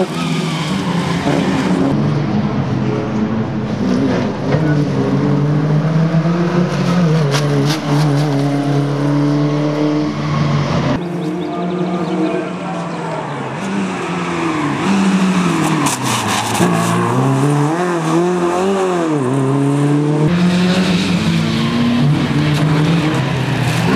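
Tyres skid and squeal on tarmac.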